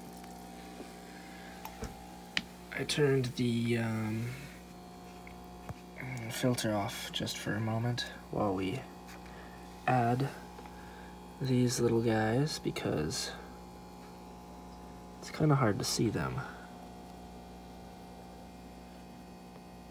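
A small water pump hums steadily.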